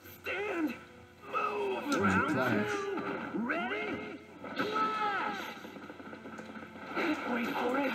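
Heavy punches land with loud impact blasts.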